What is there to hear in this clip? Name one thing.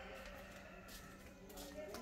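Footsteps scuff on a concrete floor.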